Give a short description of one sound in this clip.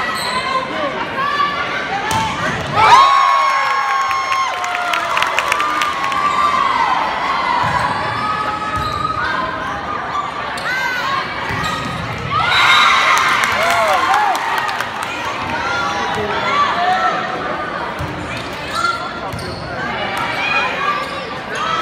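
A crowd cheers and shouts throughout a large echoing gym.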